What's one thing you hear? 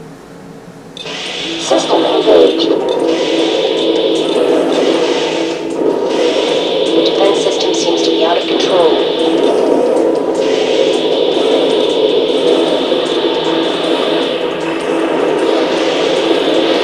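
Machine gun fire rattles rapidly from a video game.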